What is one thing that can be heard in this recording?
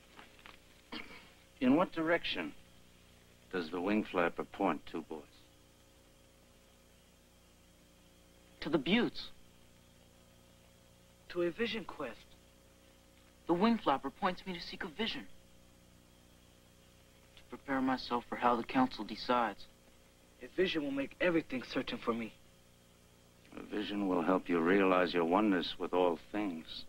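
A man speaks slowly and solemnly, close by.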